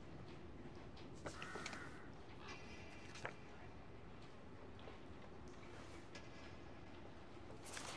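Paper rustles as a sheet is handled and turned over.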